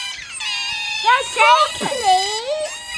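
An otter squeals loudly with a wavering cry.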